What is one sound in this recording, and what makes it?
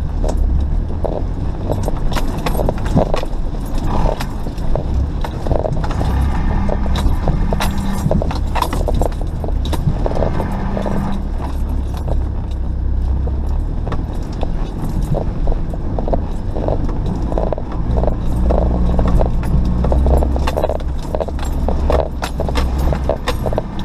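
A vehicle engine rumbles steadily, rising and falling as it drives.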